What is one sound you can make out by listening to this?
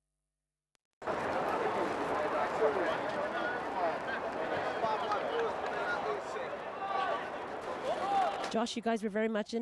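A crowd chatters loudly nearby.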